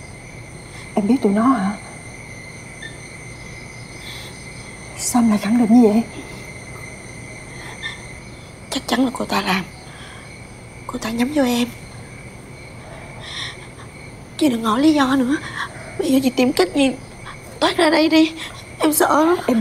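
Another young woman answers in a tearful, shaky voice.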